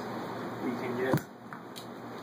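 A golf club taps a ball across a carpet.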